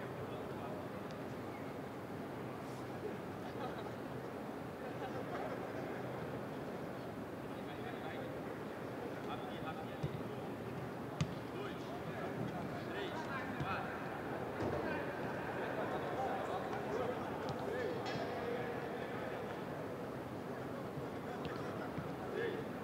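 Young men call out and shout to each other from a distance in a large open stadium.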